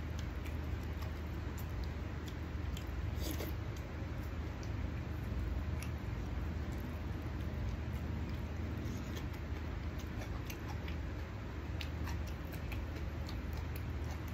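Fingers squelch and mix wet food on a plate.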